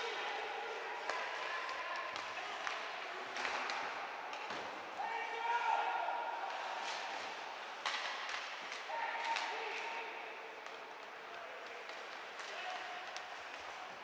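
Skate blades scrape and hiss across the ice.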